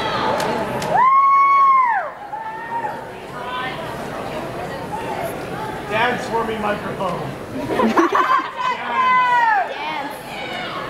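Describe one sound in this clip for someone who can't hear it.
Someone in a crowd whistles loudly.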